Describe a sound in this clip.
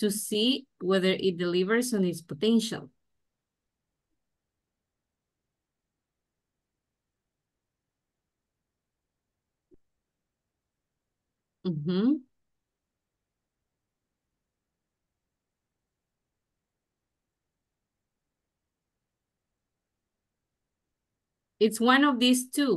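A woman speaks calmly through an online call, with pauses.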